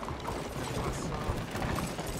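Carriage wheels rattle along.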